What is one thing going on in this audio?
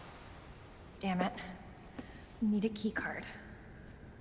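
A young woman says a few words with annoyance, close by.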